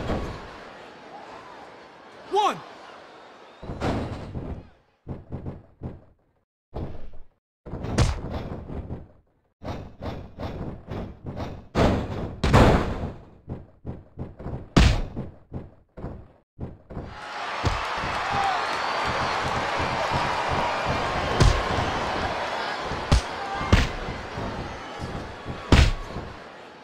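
Bodies slam onto a wrestling mat with heavy thuds.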